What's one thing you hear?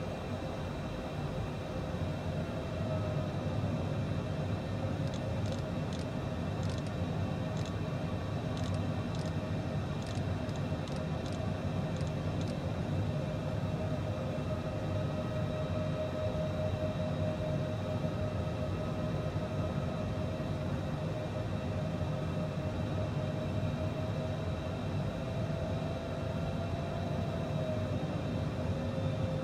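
Jet engines drone steadily inside a cockpit.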